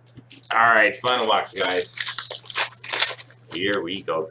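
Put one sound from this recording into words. A foil wrapper crinkles and tears in someone's hands.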